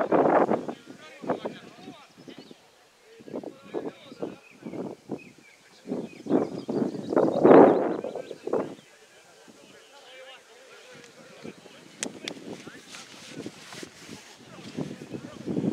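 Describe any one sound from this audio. Young players shout to each other across an open field outdoors.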